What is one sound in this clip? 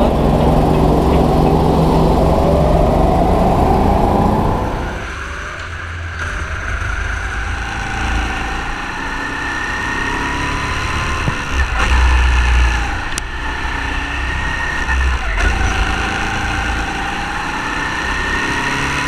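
A go-kart engine whines and revs as the kart races along.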